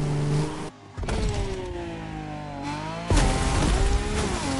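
A jet ski engine whines and surges over water.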